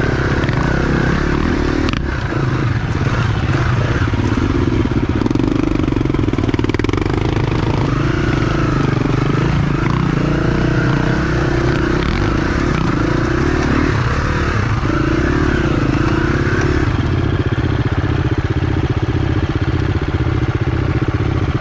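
A dirt bike engine revs and sputters close by.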